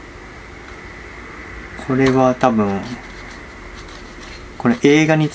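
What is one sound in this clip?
Magazine pages rustle as they turn.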